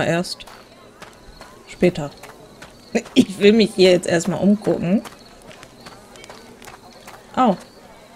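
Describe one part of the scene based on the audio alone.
Footsteps run on a stone path.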